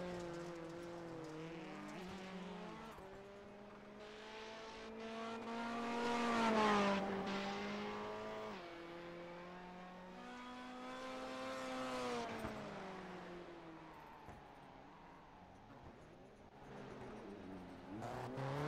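A racing car engine roars and revs up and down as the car speeds around a track.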